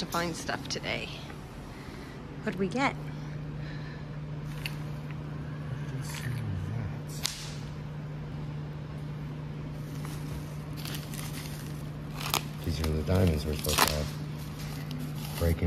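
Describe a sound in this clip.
Plastic bubble wrap rustles and crinkles as it is unwrapped.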